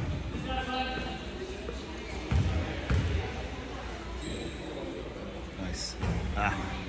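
Voices and shouts echo through a large gym hall.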